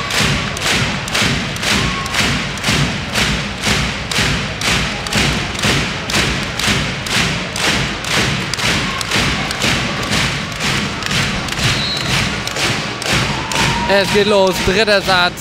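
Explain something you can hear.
A crowd claps in a steady fast rhythm in a large echoing hall.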